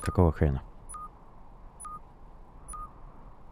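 Short electronic beeps repeat at an even pace.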